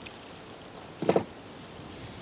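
A wooden object knocks sharply on a table.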